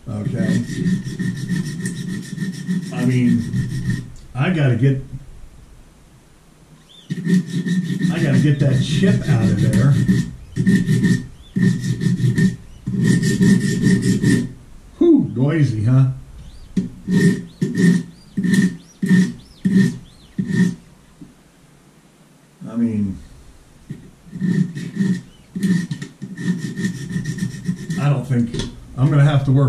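A sharpening stone scrapes along a knife blade in quick, rhythmic strokes.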